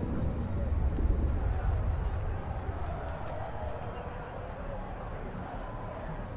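Icy magic crackles and hums in a low rumble.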